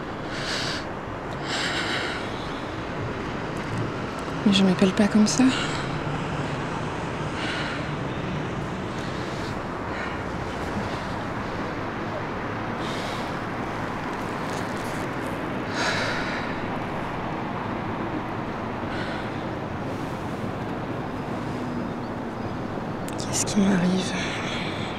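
Water flows gently nearby.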